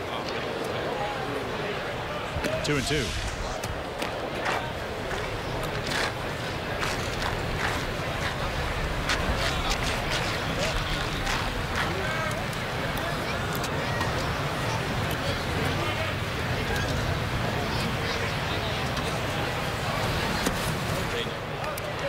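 A stadium crowd murmurs and chatters steadily outdoors.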